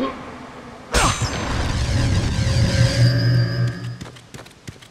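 A magical burst shimmers and rings out.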